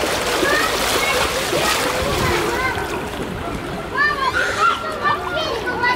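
Water splashes as a woman dips a toddler into a pool.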